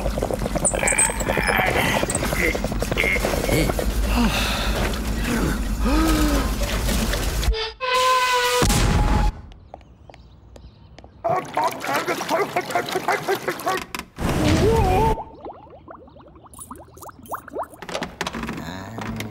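A man grunts and mutters in alarm.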